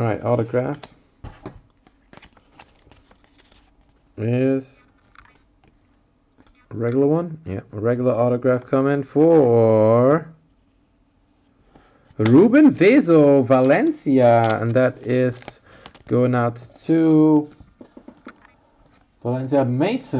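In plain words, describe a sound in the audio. Trading cards rustle and slide against plastic sleeves.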